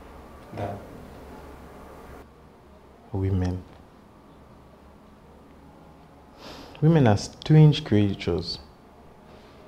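A second man speaks calmly in reply nearby.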